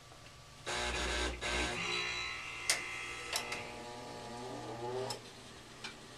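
A furnace motor hums and whirs, then winds down.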